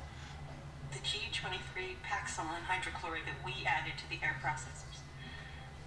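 A woman speaks tensely, heard through loudspeakers.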